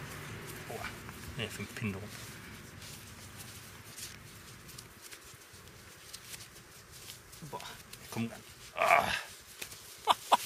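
Shoes are pulled off feet and dropped onto grass with soft thuds.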